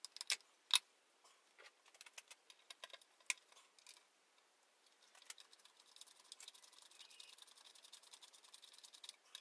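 Metal parts click and rattle.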